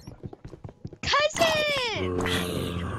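A zombie groans loudly.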